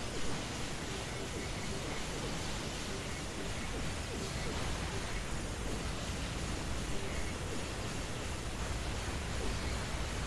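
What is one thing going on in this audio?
Energy blasts crackle and boom again and again.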